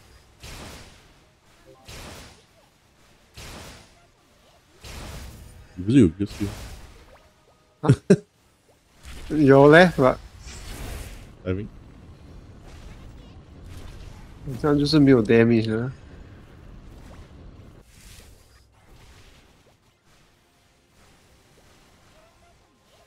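Game attack effects whoosh and blast in quick bursts.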